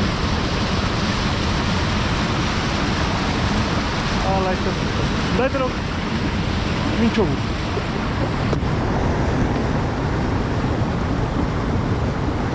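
Water rushes and splashes steadily along a river bank outdoors.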